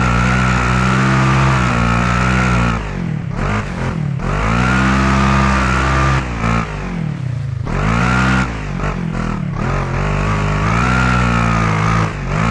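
An off-road buggy engine roars and revs up and down.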